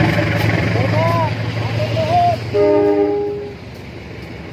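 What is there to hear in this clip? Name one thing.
A train horn blasts.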